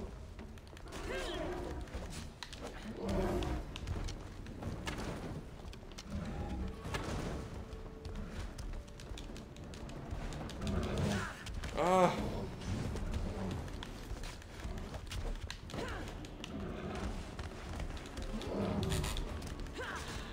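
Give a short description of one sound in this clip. A beast roars and bellows loudly.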